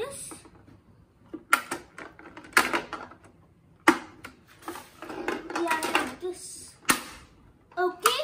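A plastic printer tray clicks and clatters.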